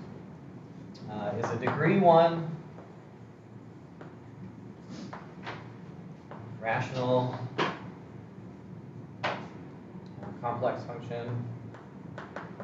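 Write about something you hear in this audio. A young man speaks calmly, as if lecturing.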